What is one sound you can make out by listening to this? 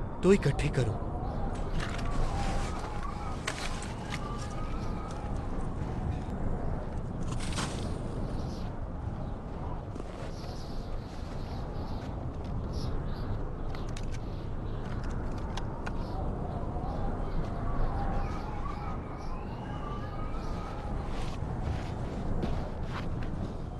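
Hands dig and scrape through crunchy snow.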